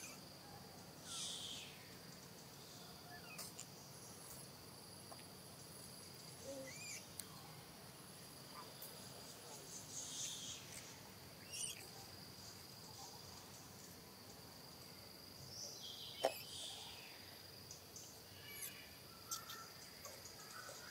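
A baby monkey squeals in high, thin cries.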